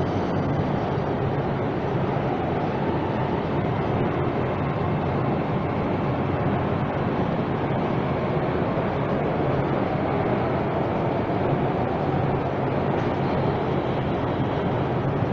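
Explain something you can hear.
A subway train rumbles along with a loud, steady roar.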